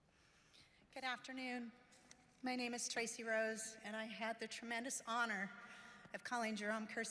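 A woman speaks into a microphone with emotion, heard through loudspeakers in a large hall.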